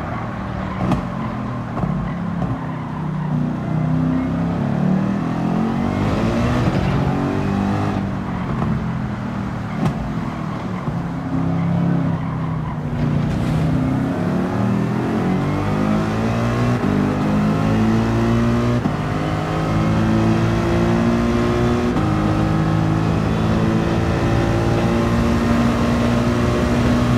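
A racing car engine roars loudly, rising in pitch as it speeds up and dropping sharply at each gear change.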